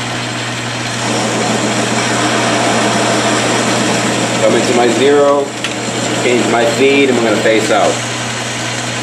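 A cutting tool scrapes and whirs against spinning metal.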